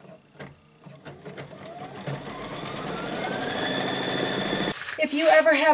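A sewing machine motor whirs and speeds up.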